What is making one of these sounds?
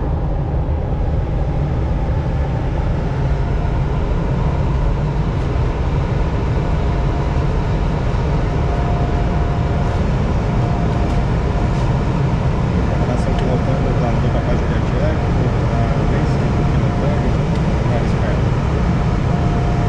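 Air rushes steadily and loudly past a glider's canopy in flight.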